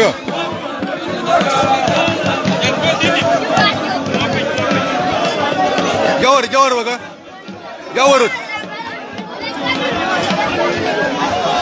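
Children shout and cheer excitedly close by.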